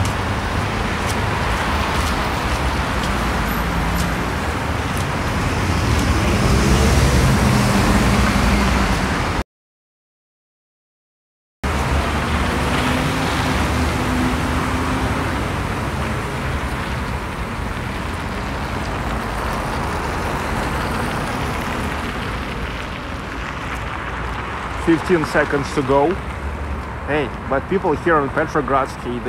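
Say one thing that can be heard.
City traffic hums steadily outdoors.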